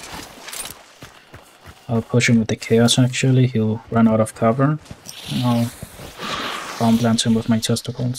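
Footsteps rustle through tall grass and reeds.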